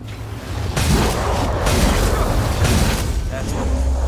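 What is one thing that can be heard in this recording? A blade slashes and strikes with heavy, crunching impacts.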